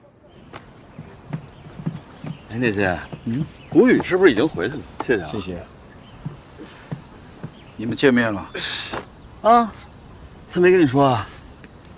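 A man speaks calmly in conversation outdoors.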